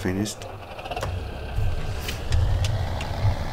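A diesel tractor engine drones.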